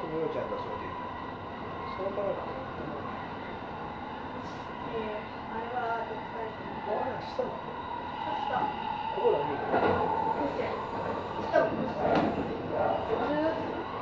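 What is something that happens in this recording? A train hums and rumbles steadily along the tracks.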